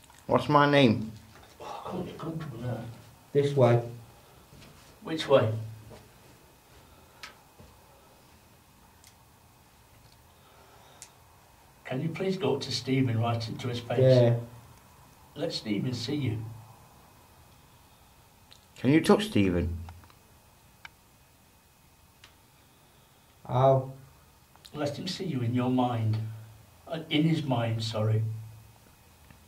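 A man speaks quietly in short bursts close to a microphone, with long pauses.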